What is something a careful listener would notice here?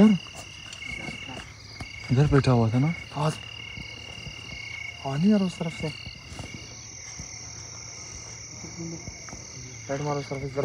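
Men talk loudly outdoors nearby.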